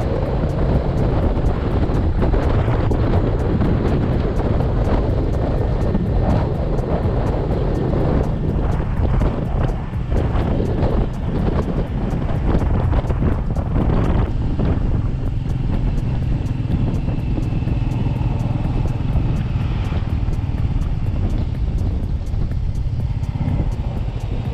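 Wind buffets loudly against the rider.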